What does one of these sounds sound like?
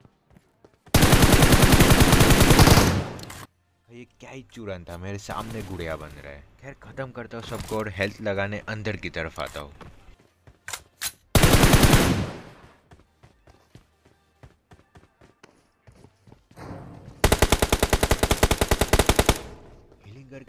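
A rifle fires rapid bursts of shots up close.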